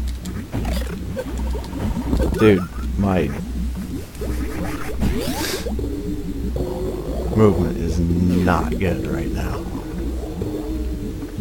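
Electronic game music plays with a deep, pulsing bass.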